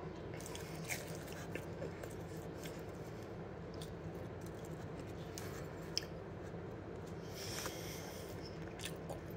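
A teenage boy chews food noisily close by.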